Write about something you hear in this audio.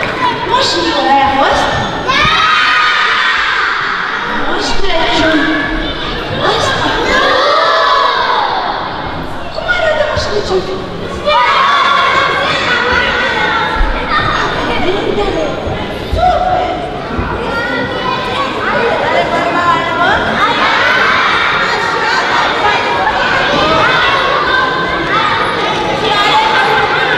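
A young woman speaks with animation through a microphone and loudspeakers in a large echoing hall.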